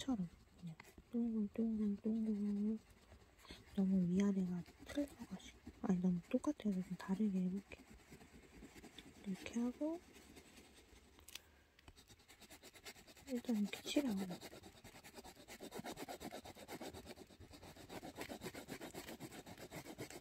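An oil pastel scrapes rhythmically across paper.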